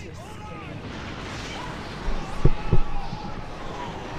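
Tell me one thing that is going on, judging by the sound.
A magic blast bursts with a crackling whoosh.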